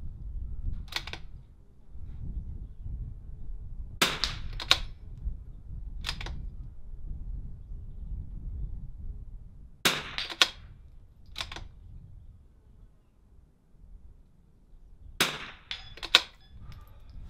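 A rifle fires single shots outdoors.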